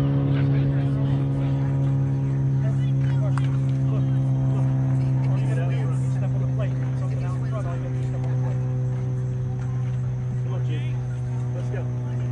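Young ballplayers call out faintly across an open field.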